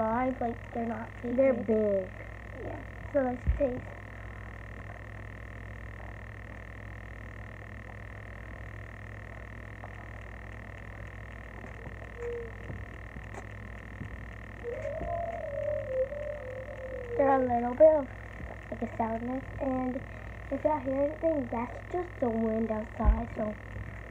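Young girls talk with animation close to the microphone.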